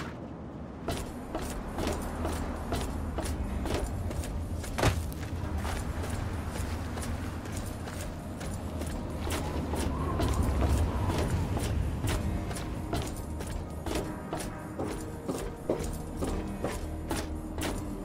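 Footsteps clank on metal and gravel.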